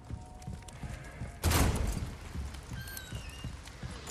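A heavy wooden door swings open.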